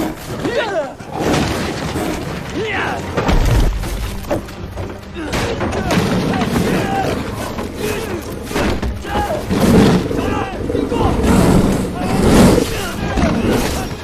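Heavy blows and thuds land in a struggle.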